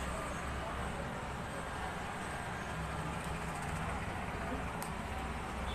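Plastic parts of a tripod click and rattle as it is handled.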